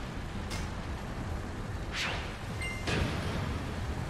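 Short electronic menu beeps sound as items are selected.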